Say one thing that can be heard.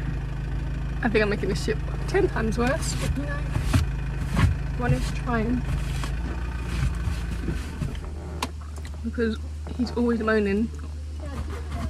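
A young woman speaks close by in short, quiet bursts.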